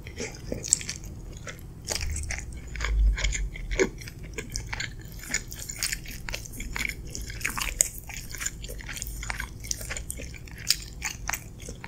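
A wooden fork scrapes and clinks against a glass dish.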